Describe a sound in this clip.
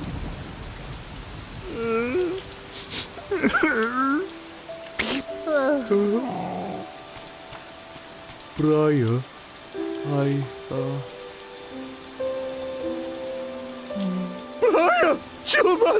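Rain pours down steadily.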